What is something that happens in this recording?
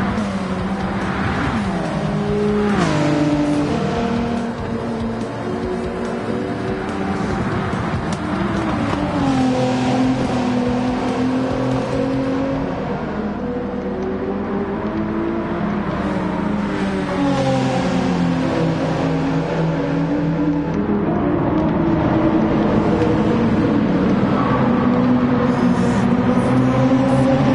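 Racing car engines roar and rev, shifting gears as they speed past.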